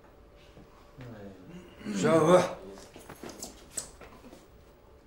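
A man speaks briefly in a rough, mocking voice.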